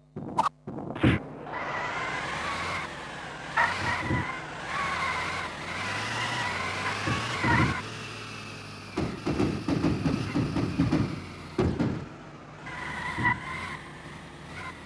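A car engine hums as a car drives along.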